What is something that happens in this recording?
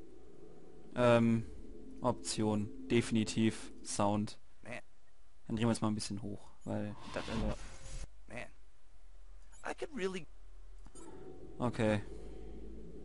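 Menu selections beep and click.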